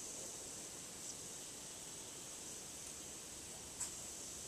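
Metal wind chimes ring softly now and then.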